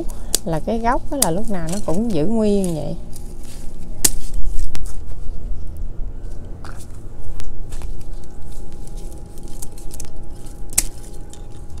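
Scissors snip through plant stems.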